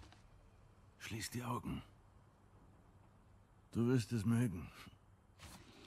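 A man speaks softly and calmly.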